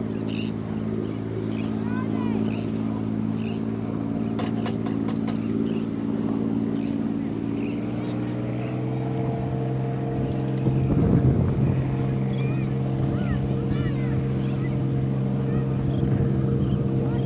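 A boat motor hums steadily close by.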